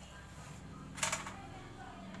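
A metal part clanks against a motorbike's chain cover.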